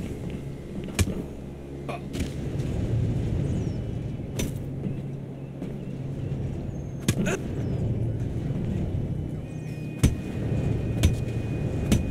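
Punches land with sharp thuds in a fight.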